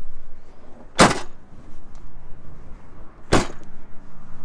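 A van's rear doors slam shut with two loud bangs.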